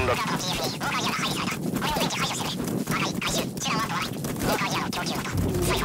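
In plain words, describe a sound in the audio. A horse gallops, its hooves thudding on dry ground.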